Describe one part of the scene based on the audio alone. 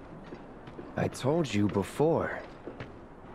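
A young man answers in a calm, flat voice.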